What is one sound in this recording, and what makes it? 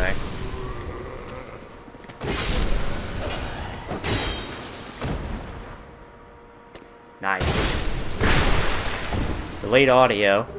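A sword swishes and slashes with heavy thuds.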